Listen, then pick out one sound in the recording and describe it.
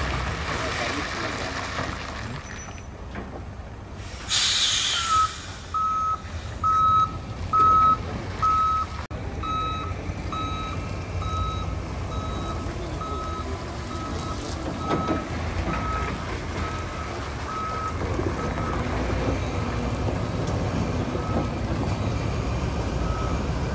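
A heavy truck engine rumbles steadily nearby.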